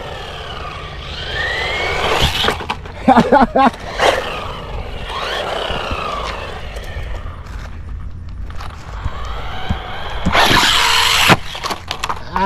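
A toy car's electric motor whines, rising and falling in pitch as it speeds up and slows down.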